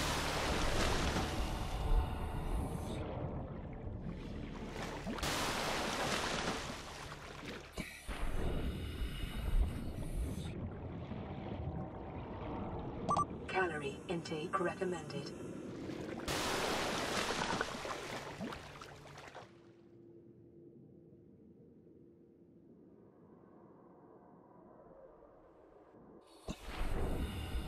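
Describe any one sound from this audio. Muffled water bubbles and churns underwater.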